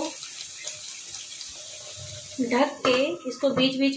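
A metal lid clanks onto a pan.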